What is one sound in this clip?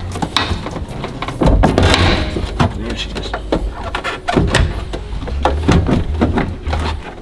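Plastic parts knock and rattle as a man handles them.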